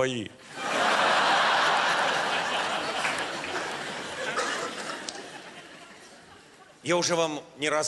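A large audience laughs and applauds in a big hall.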